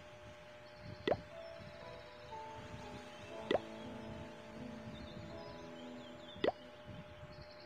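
Short sharp clicks sound as buttons are pressed.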